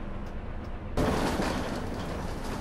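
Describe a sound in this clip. Bus doors hiss as they open.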